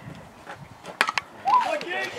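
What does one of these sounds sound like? A metal bat cracks against a baseball.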